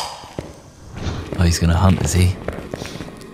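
A second young man talks into a microphone.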